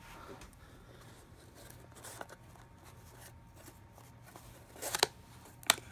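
A cardboard box slides and taps on a surface.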